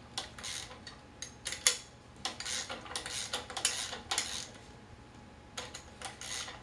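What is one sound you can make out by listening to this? A hand tool scrapes and clicks against a wheelchair wheel in short bursts.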